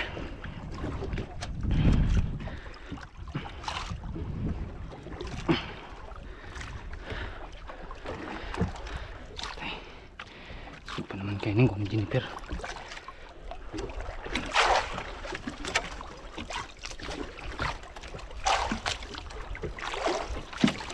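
Waves slosh and splash against a small boat's hull outdoors.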